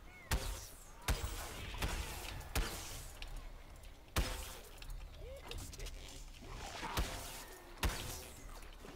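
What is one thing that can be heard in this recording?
Laser guns fire in sharp short blasts.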